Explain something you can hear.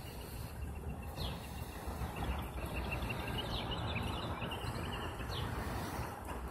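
A garbage truck's diesel engine rumbles steadily nearby.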